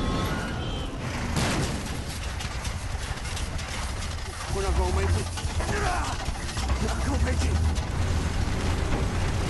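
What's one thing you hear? Heavy truck engines roar and rumble close by.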